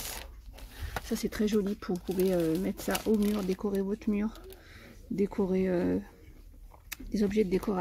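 Plastic packaging crinkles as a hand handles it.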